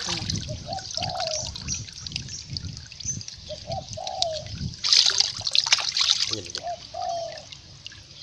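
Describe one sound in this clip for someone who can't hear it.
Water splashes in a pond.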